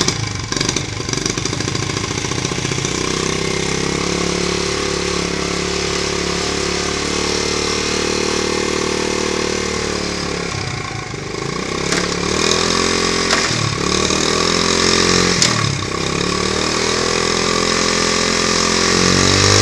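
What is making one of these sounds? A small motorcycle engine idles with a steady putter.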